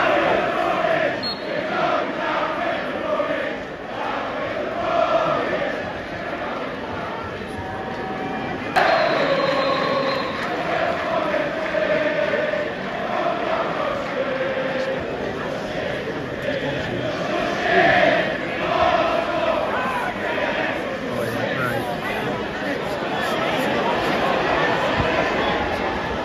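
A large stadium crowd sings a chant loudly outdoors.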